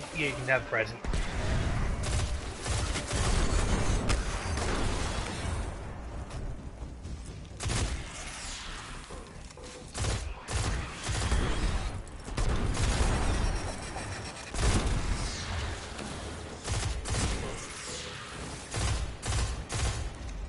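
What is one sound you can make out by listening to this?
Gunfire blasts rapidly in bursts.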